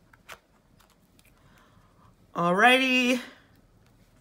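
Playing cards tap and slide softly against each other.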